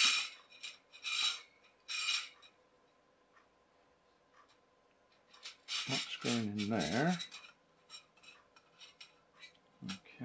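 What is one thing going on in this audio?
Metal rods clink and slide against each other.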